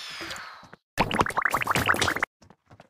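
Game figures clash in a burst of crunching battle sounds.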